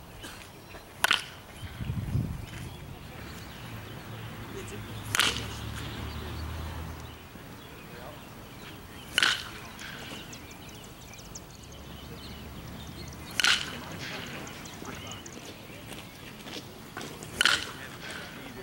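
A bat cracks sharply against a baseball, again and again.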